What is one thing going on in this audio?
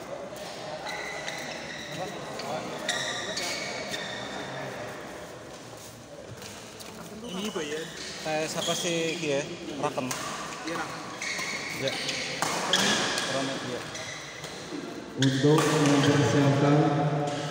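A crowd of spectators chatters in an echoing hall.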